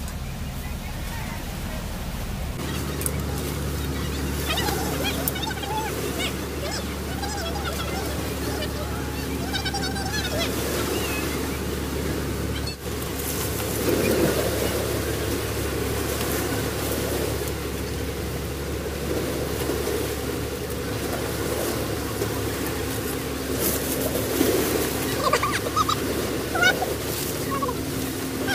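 Tent fabric rustles and flaps as it is handled.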